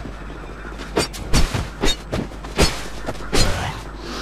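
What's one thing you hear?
Weapon blows strike with heavy thuds.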